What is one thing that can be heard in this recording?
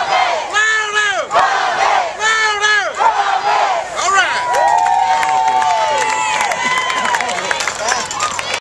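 A group of young girls chants and shouts cheers in unison.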